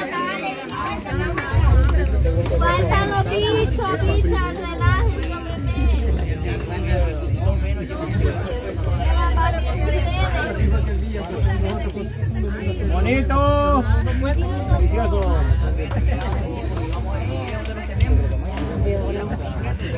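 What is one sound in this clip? Several adults talk with animation close by, outdoors.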